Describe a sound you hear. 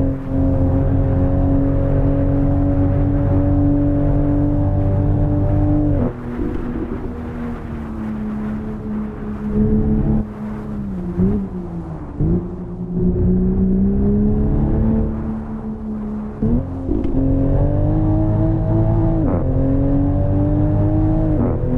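A car engine hums loudly and shifts pitch as the car speeds up and slows down.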